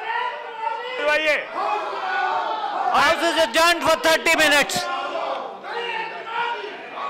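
Several men shout over one another in a large echoing hall.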